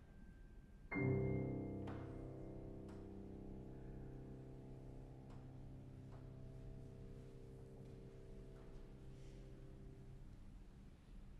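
A piano chord rings out and slowly fades.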